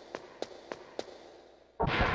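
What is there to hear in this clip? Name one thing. Footsteps tap along a hard floor.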